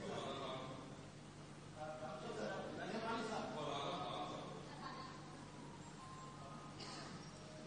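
A young man speaks calmly into microphones.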